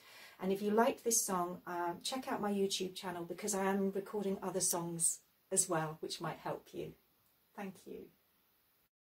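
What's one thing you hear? A middle-aged woman speaks calmly and warmly, close by.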